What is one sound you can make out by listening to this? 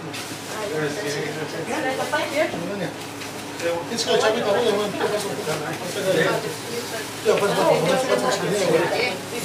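Shoes shuffle and scrape on a hard floor as people dance.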